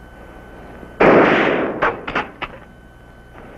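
A gunshot cracks and echoes.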